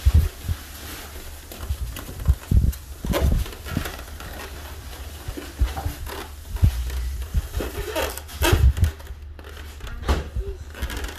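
Hands rustle and scrape in a foam box.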